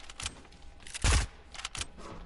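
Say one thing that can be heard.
A game explosion bursts loudly.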